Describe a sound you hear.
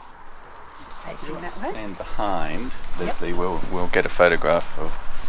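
An elderly man speaks calmly into a microphone close by.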